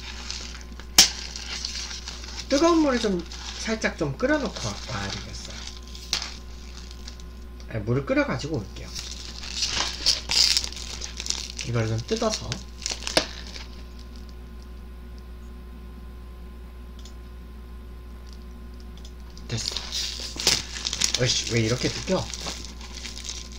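A plastic food package crinkles in a man's hands.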